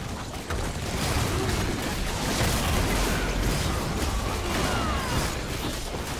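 Game spell effects crackle and boom in a dense, noisy fight.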